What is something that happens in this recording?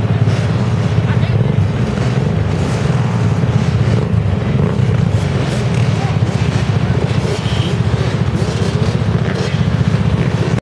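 Motorcycle and quad bike engines idle and rev loudly nearby.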